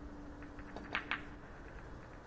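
Snooker balls knock together with a click.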